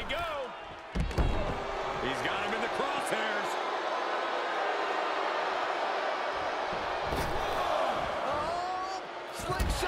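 A heavy body thuds onto a wrestling ring mat.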